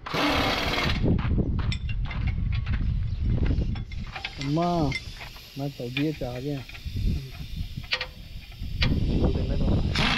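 Metal tools clank against a steel frame.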